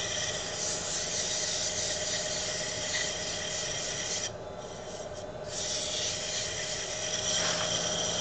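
A cutting tool scrapes and hisses against spinning wood.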